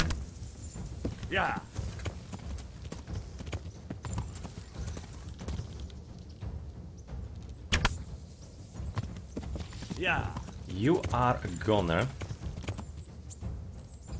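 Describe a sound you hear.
Horse hooves thud steadily at a gallop.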